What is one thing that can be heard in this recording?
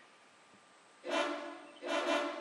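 A small animal calls with short, shrill cries.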